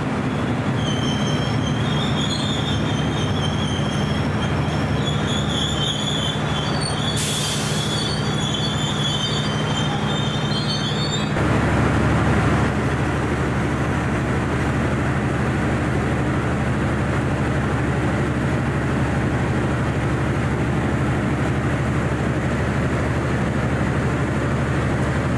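A train engine hums steadily up close.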